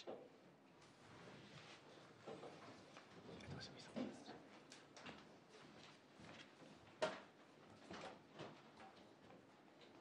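Papers rustle and shuffle near a microphone.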